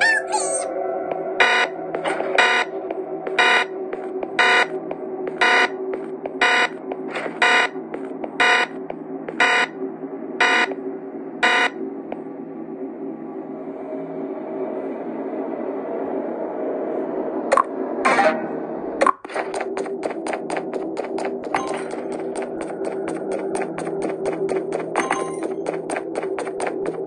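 Cheerful game music plays steadily.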